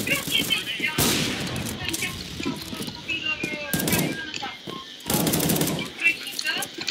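Loud rifle shots ring out with a sharp crack.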